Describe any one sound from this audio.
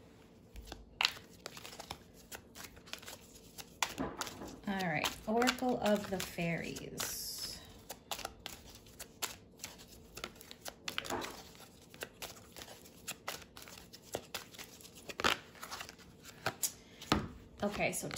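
Cards shuffle with quick riffling and tapping.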